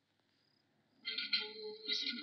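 A mobile phone rings with a tune.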